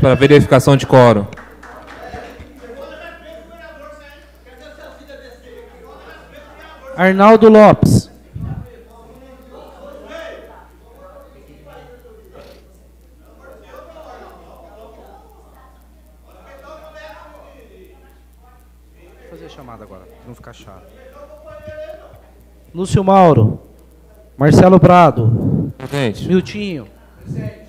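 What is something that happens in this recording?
A man speaks calmly into a microphone, with his voice carried over loudspeakers.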